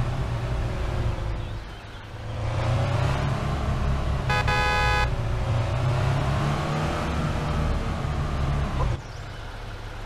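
A truck engine rumbles and revs as it drives.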